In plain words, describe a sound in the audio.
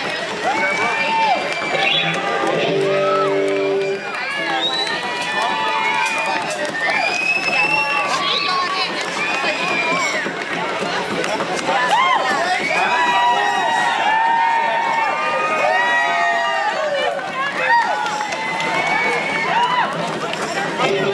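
A crowd of adults chatters loudly all around.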